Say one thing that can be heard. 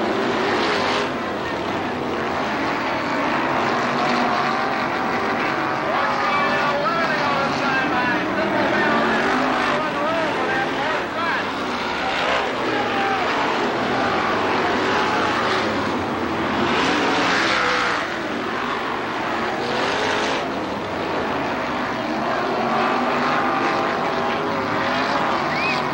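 Race car engines roar and whine loudly, rising and falling in pitch.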